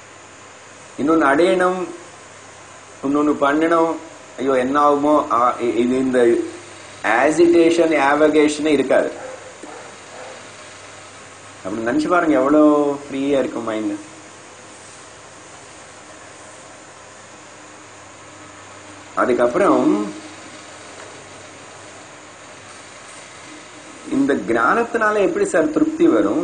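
An elderly man speaks with animation into a close microphone, in bursts with pauses.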